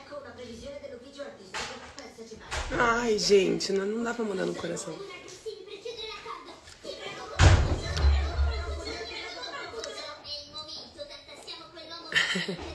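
A young woman talks casually and close to a phone microphone.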